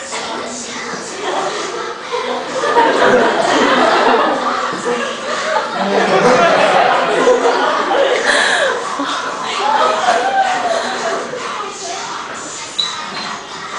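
A crowd of teenagers laughs and cheers.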